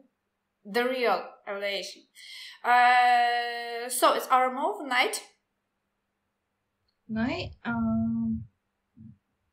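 A young woman talks animatedly and laughs over an online call.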